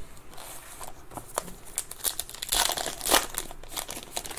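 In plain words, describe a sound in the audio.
A wrapper crinkles as hands tear open a pack.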